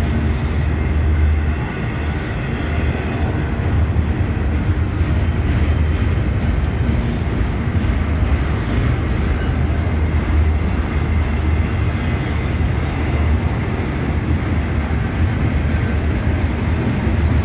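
A long freight train rumbles past close by, its wheels clattering on the rails.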